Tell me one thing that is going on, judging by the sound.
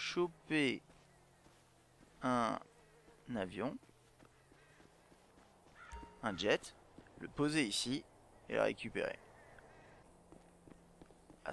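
Footsteps scuff across sandy ground.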